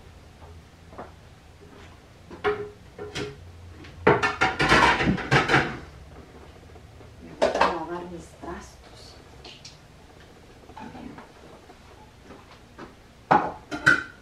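Dishes clatter and clink as they are put away.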